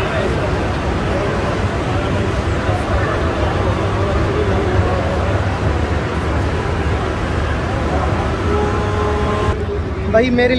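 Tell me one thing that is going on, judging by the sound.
A dense crowd murmurs and calls out in a large echoing hall.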